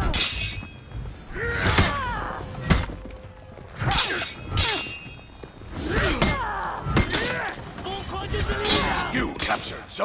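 Blades swoosh through the air.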